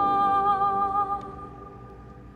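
A woman sings a sustained note into a microphone in a large echoing hall.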